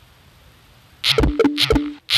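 Small balls rattle and clatter as they pour out of a cup.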